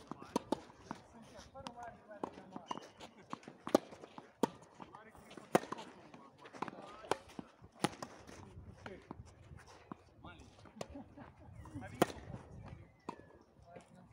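Tennis balls are struck by rackets with sharp pops, outdoors.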